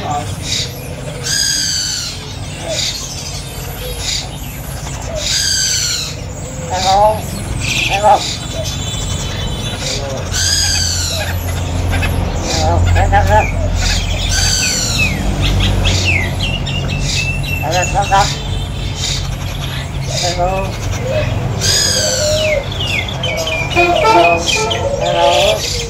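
A caged bird sings loud, varied whistling calls and chatters close by.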